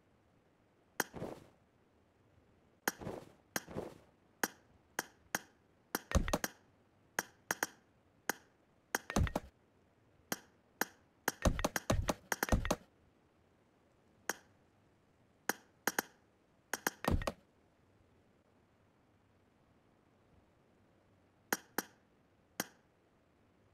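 Short clicking and thudding interface sounds play in quick bursts as building pieces snap into place.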